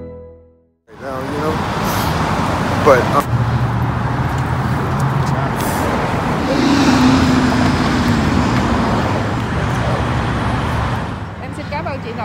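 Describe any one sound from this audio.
Traffic roars past close by outdoors.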